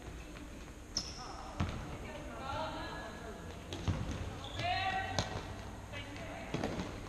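Shoes squeak sharply on a hard indoor floor.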